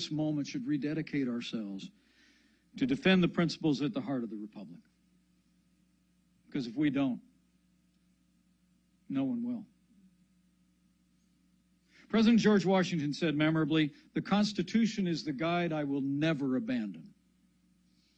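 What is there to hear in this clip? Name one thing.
A middle-aged man speaks deliberately into a microphone, with long pauses.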